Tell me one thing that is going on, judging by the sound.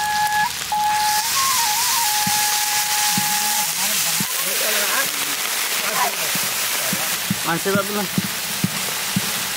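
Food sizzles loudly in a hot pan.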